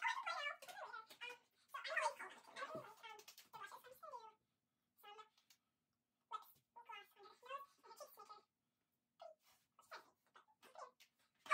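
A second girl talks and laughs close by.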